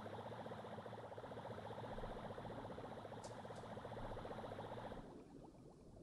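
A small submarine hums and whirs as it glides along.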